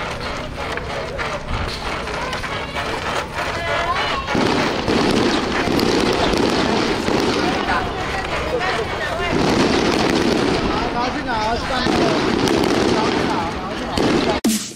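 Men shout and call out together outdoors.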